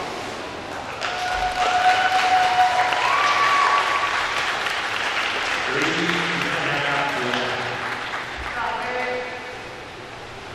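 Young girls cheer and shout loudly.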